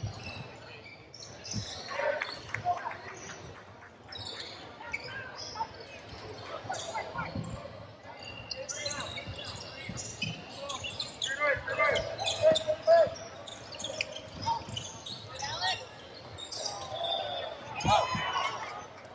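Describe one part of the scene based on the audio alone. Young players shout to each other in a large echoing gym.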